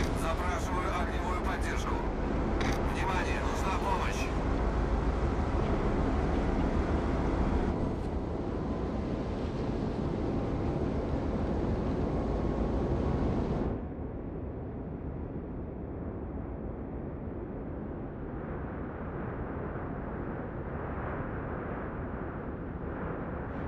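A large ship's engine rumbles low and steady.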